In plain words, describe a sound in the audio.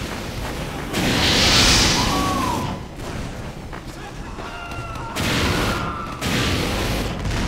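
A flamethrower roars in loud bursts.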